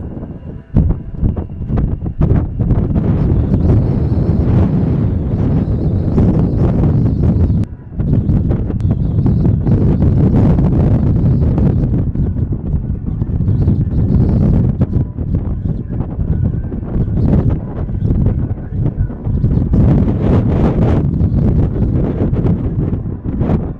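A twin-engine jet fighter roars as it rolls along a runway.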